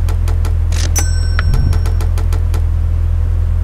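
A bright electronic chime rings out in quick repeated notes.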